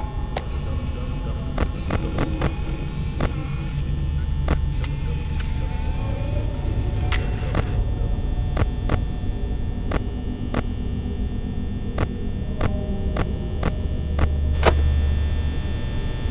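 Electronic static hisses and crackles steadily.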